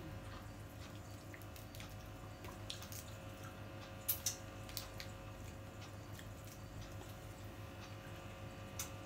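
Shells crack and crunch as seafood is broken open by hand.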